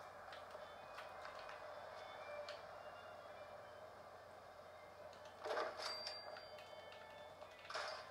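A video game plays short menu clicks and chimes as items are selected.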